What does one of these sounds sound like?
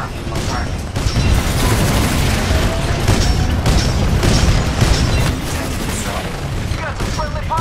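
Explosions rumble and crash nearby.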